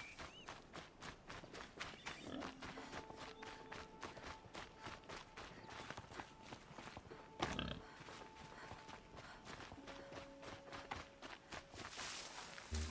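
Footsteps run quickly through grass and brush.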